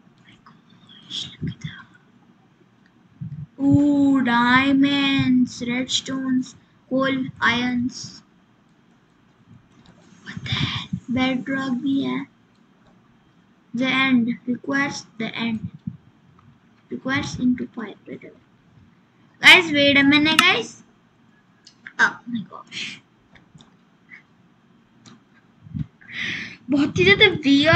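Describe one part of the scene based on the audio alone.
A young girl speaks into a microphone close by, in short bursts with pauses.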